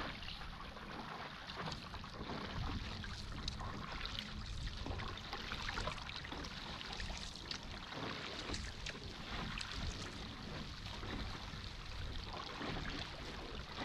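Water churns and splashes in a boat's wake.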